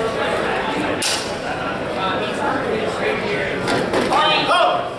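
Practice swords clack together.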